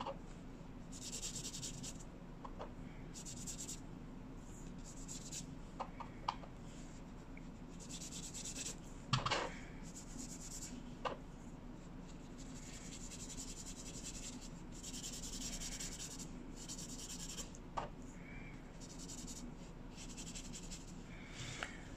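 A foam blending tool brushes softly across paper in short scratchy bursts.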